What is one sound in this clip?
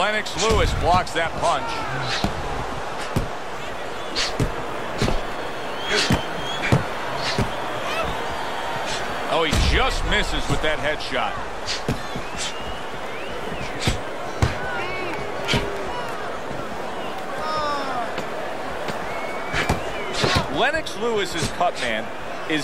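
Punches thud against bodies in quick bursts.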